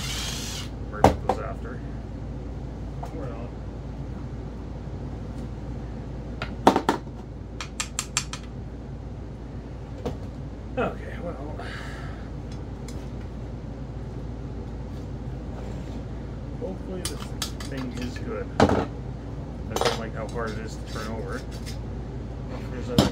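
Metal parts clink and knock on a workbench.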